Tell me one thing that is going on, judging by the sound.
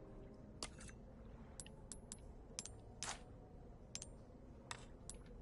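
Short, crisp menu clicks sound repeatedly.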